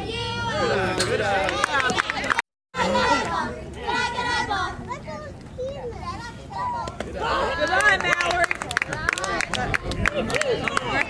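Young girls shout and cheer loudly outdoors.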